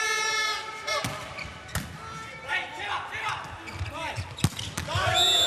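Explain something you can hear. A volleyball is struck hard several times.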